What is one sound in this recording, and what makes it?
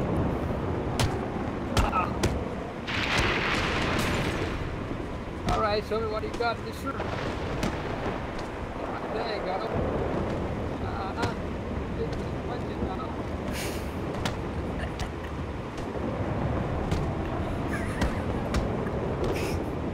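Fists thud against bodies in a fistfight.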